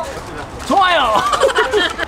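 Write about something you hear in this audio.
A young man speaks excitedly close by.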